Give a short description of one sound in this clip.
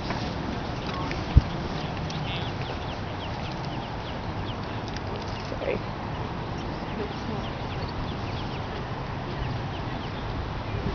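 Ducklings peep in quick, high chirps.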